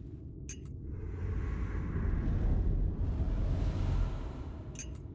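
A giant creature gulps down food with a deep rumble.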